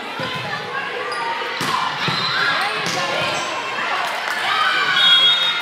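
Young women call out to each other in a large echoing gym.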